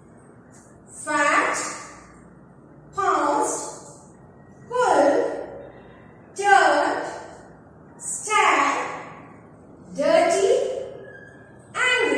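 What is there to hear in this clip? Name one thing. A woman speaks clearly and slowly, as if reading aloud, in short spaced phrases.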